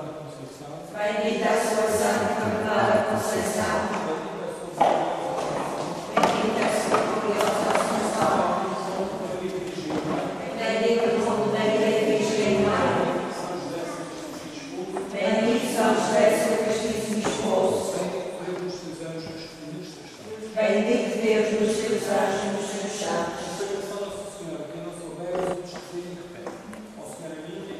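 A crowd of young people sings together in an echoing hall.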